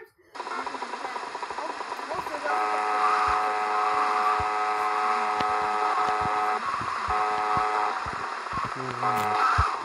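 A motorbike engine drones steadily.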